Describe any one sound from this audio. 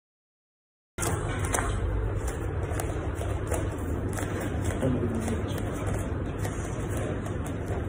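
Bare feet shuffle and patter on a smooth floor.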